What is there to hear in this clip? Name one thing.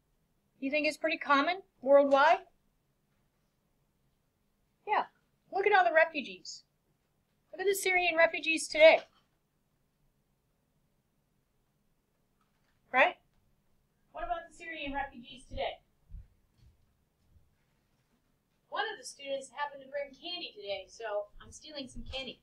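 A woman speaks in bursts close to a webcam microphone, with pauses between.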